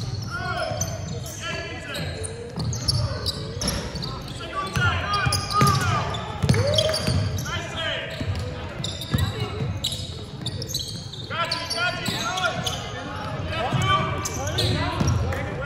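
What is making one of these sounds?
Basketball shoes squeak sharply on a wooden court floor in a large echoing hall.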